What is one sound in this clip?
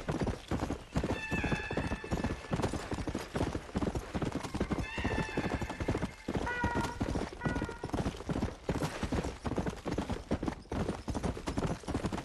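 A horse's hooves pound rapidly on a dirt trail.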